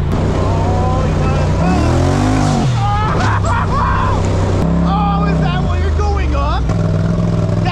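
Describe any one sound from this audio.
An off-road vehicle's engine drones and revs up and down.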